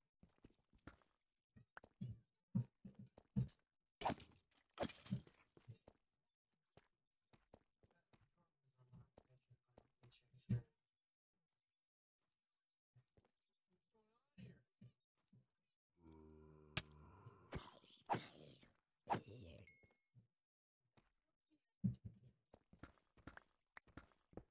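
A pickaxe chips and breaks stone blocks in quick knocks.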